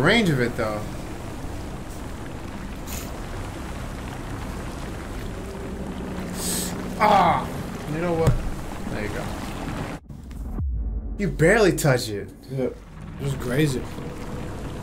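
Two men talk and react with animation, close through microphones.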